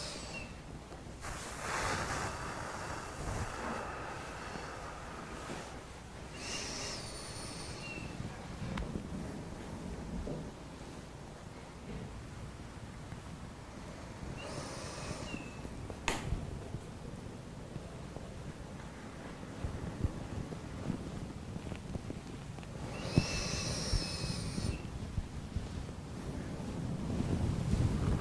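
A man talks quietly close by.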